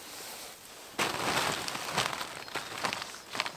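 Plastic sheeting crinkles loudly as branches are laid on it.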